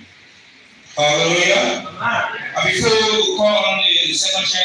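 A man speaks loudly through a loudspeaker in a large echoing hall.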